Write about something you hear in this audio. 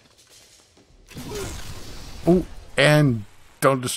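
A heavy object crashes to the floor.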